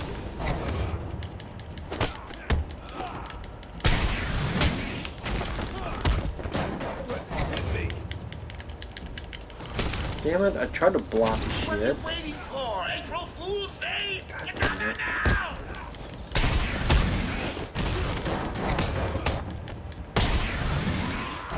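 Punches and thuds land in a fast brawl.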